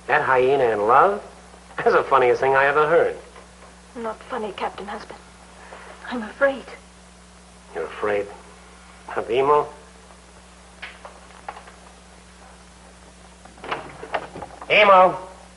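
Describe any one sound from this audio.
A man speaks softly and close by.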